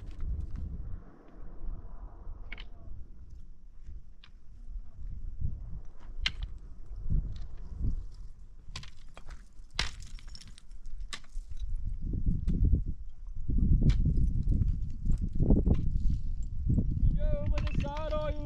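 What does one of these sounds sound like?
Footsteps crunch on loose stones and dry brush.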